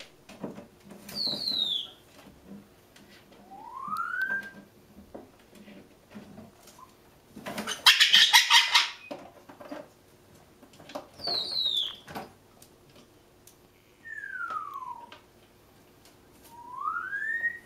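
A parrot whistles in sliding notes, rising and falling.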